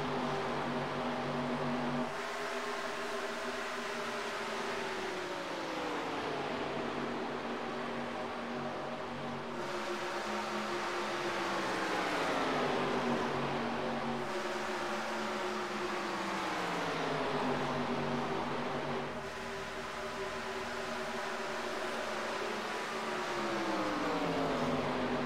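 Racing car engines roar loudly, their pitch dropping again and again as the cars pass by.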